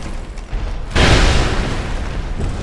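A heavy metal blow strikes with a crackling burst.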